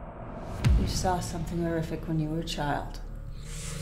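A woman speaks calmly and quietly, close by.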